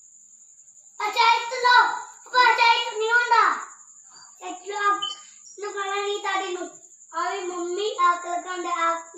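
A woman and children sing loudly close by.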